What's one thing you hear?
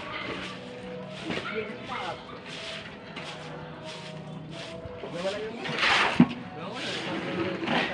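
Men talk and call to each other outdoors.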